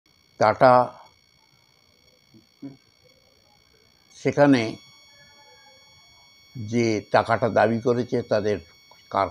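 An elderly man speaks calmly and close to a microphone, in short bursts with pauses.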